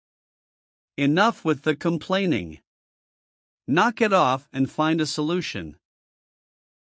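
A woman reads out short sentences.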